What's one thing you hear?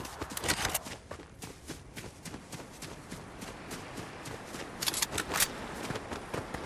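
Footsteps thud quickly over grass and rock.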